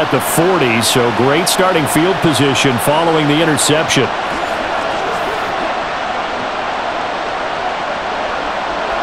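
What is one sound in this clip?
A large stadium crowd roars steadily.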